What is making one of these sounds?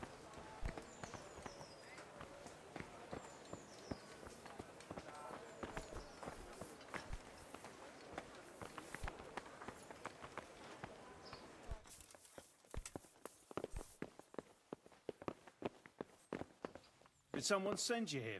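Footsteps thud on wooden and stone floors.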